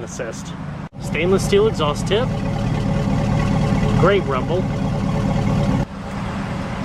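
A car engine idles with a low, steady rumble from its exhaust.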